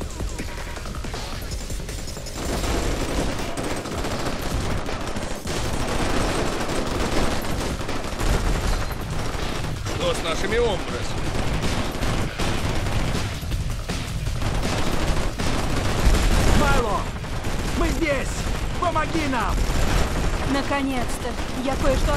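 Rapid gunfire rattles and echoes.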